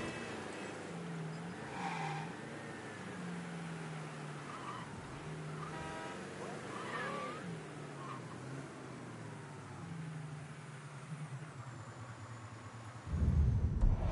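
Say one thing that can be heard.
A car engine hums steadily, rising and falling in pitch.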